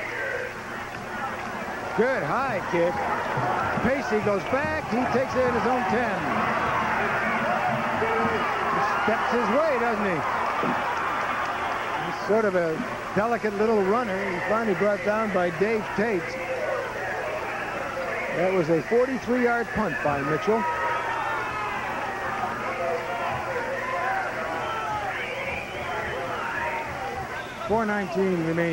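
A large crowd cheers and chatters in an open stadium.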